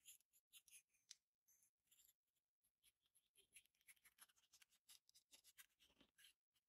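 A pen scratches and scrapes across paper.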